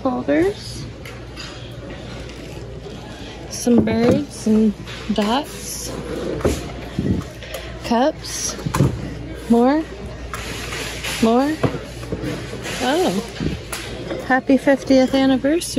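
Glassware clinks as a hand handles it.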